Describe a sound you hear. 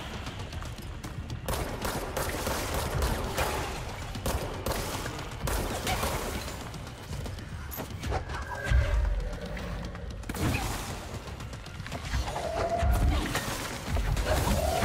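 Impacts and explosions rumble deeply.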